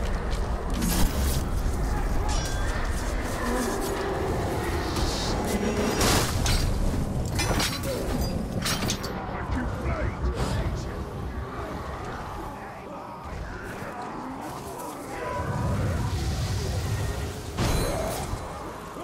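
Sharp blade strikes and impacts land in a fight.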